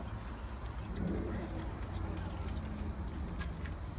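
A marching band plays softly outdoors.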